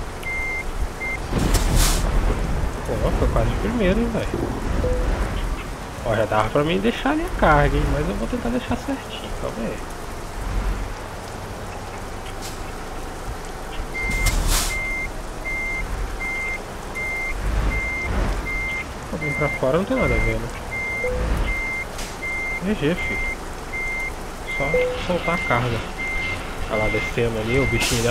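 A truck's reversing alarm beeps in a steady rhythm.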